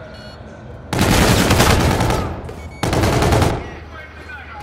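A loud explosion roars close by.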